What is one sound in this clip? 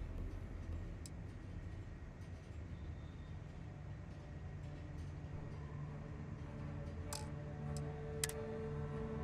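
Short electronic clicks sound as menu items change.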